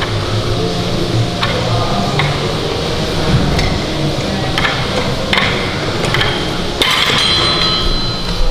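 Weight plates clank against the floor as a barbell is rowed.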